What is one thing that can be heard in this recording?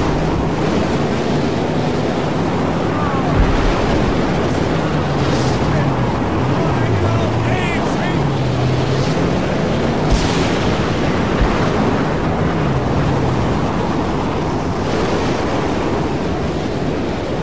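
A strong wind roars steadily.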